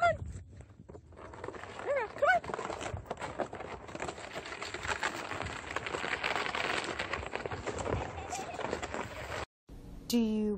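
A sled scrapes over snow.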